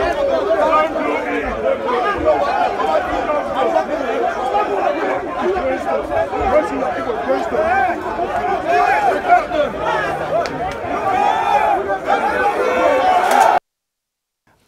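A large crowd shouts and clamours outdoors.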